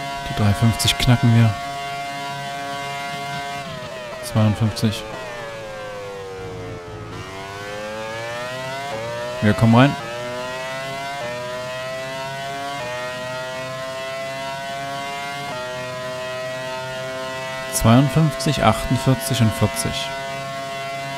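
A racing car engine screams at high revs, drops in pitch as the car slows, then climbs steadily again.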